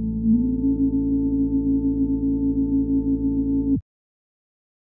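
A synthesizer plays a steady, buzzing low tone that rises slightly in pitch and then cuts off abruptly.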